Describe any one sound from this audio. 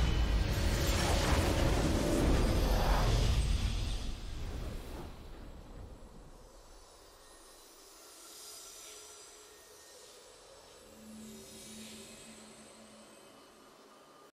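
A triumphant victory fanfare swells and fades.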